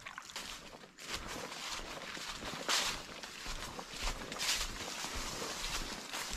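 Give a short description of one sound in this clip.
Footsteps crunch through dry fallen leaves.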